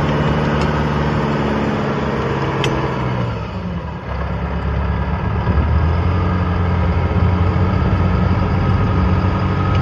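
The diesel engine of a tracked self-propelled howitzer rumbles, slows and settles to idle.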